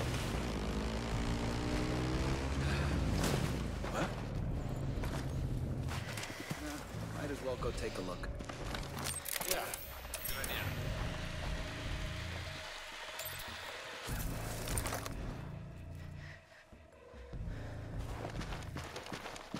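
Leaves and ferns rustle as a soldier creeps through dense undergrowth.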